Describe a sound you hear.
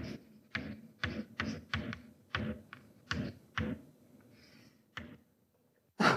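Chalk taps and scrapes on a board in quick strokes.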